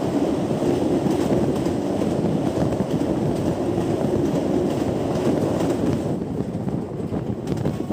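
Wind rushes past an open train door.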